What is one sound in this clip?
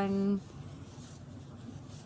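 A cotton pad rubs softly across a metal plate.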